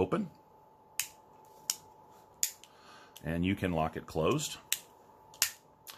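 A folding knife's blade snaps and clicks into place.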